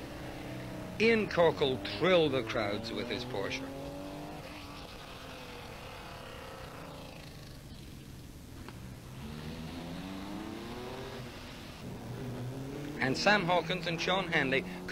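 A rally car engine roars loudly as the car speeds past close by.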